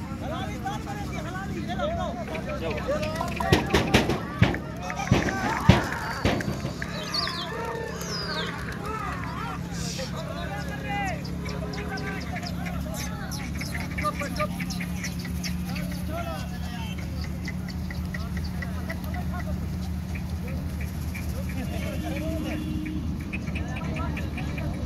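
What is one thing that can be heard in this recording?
Men call and chatter outdoors, some distance away.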